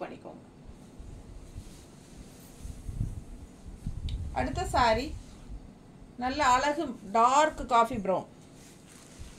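Fabric rustles as cloth is handled.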